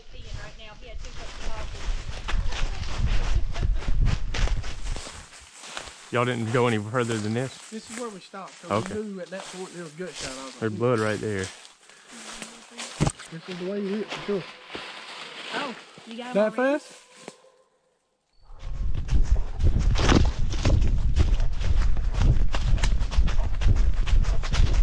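Dry leaves crunch and rustle under running paws.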